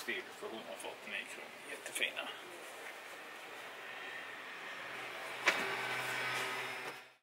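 Fabric rustles as a man handles a pair of shorts.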